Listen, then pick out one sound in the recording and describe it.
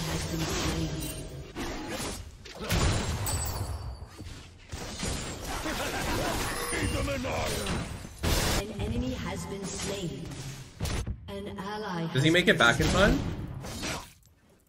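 Video game combat effects clash and whoosh.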